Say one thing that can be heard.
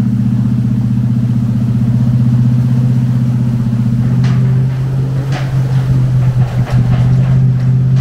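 Water splashes and churns under tyres.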